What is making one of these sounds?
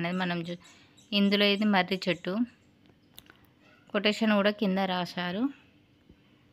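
A woman speaks close by in a clear, drawn-out voice.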